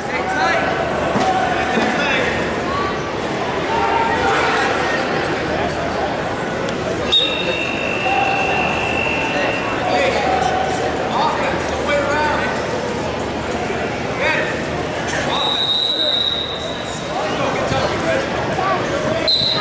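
A crowd of people chatters and calls out in a large echoing hall.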